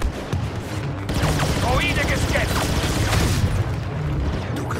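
Blaster shots fire rapidly in a loud battle.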